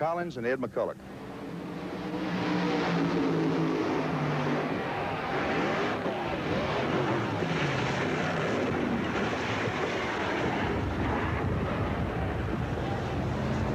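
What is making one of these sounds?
Race car engines roar down a track.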